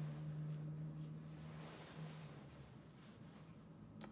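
Bed sheets rustle as a person shifts in bed.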